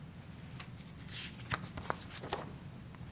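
Paper rustles and crinkles close to a microphone.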